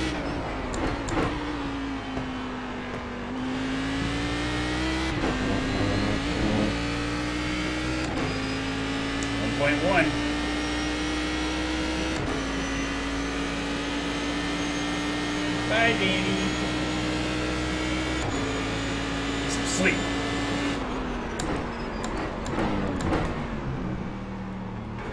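A race car engine roars steadily and shifts through its gears.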